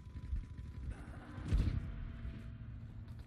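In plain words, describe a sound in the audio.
A loud explosion booms with debris crackling.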